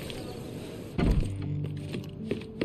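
A heavy door thuds open.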